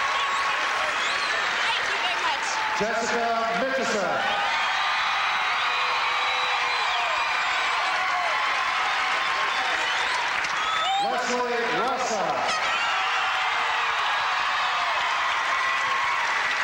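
A large crowd cheers and shouts in a big echoing arena.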